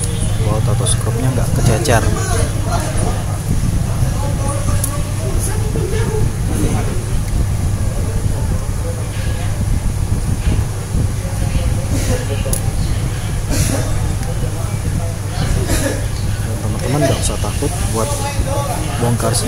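A small plastic tool clicks and scrapes against a phone's casing.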